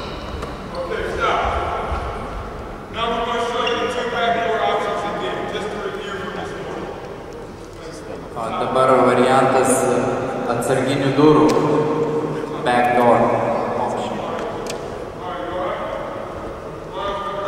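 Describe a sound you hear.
A young man speaks loudly into a microphone through a loudspeaker in a large echoing gym.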